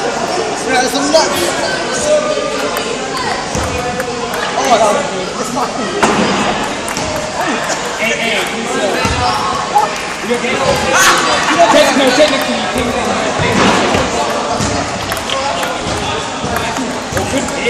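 A table tennis ball bounces on a table.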